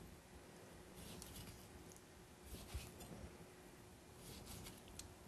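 A knife slices wetly through juicy fruit onto a wooden board.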